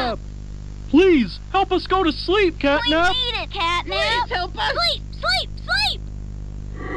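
Cartoon characters chant loudly in high voices.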